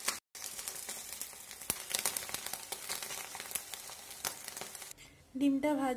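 An egg sizzles and crackles in a hot pan.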